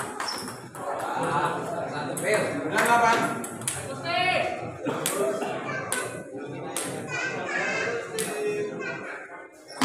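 Men talk in the background.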